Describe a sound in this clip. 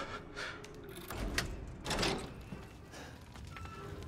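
A key turns in an old door lock with a metallic clunk.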